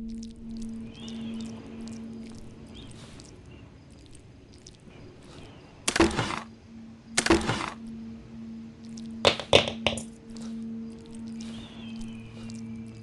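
Footsteps thud on creaking wooden floorboards.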